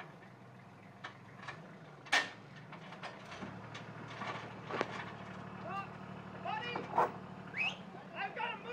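Heavy metal clanks and knocks as a tractor's loader works.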